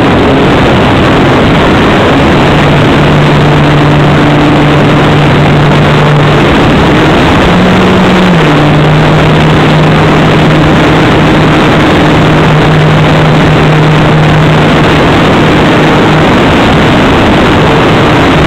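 Wind rushes loudly past the microphone.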